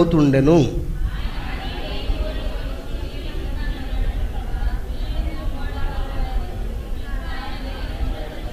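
A man speaks softly and steadily into a microphone.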